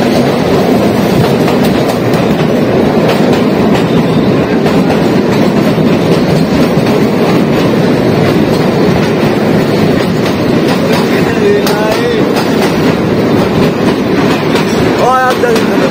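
Water rushes and splashes loudly close by.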